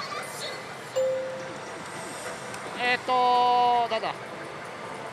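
A slot machine plays electronic tones and jingles.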